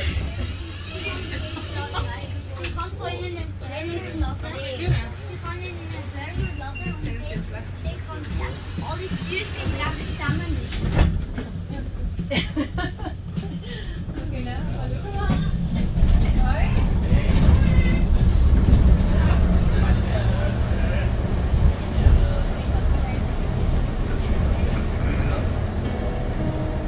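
A vehicle engine rumbles steadily while driving along a street.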